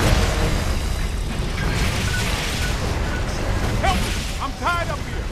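Energy beams crackle and hum steadily.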